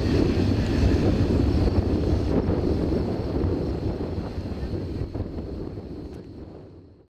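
A small propeller plane's engine drones overhead and slowly fades.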